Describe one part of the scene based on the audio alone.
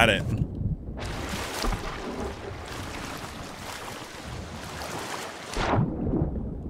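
Water rushes and bubbles.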